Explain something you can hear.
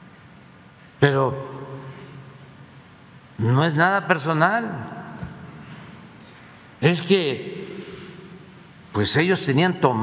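An elderly man speaks with animation through a microphone in a large echoing room.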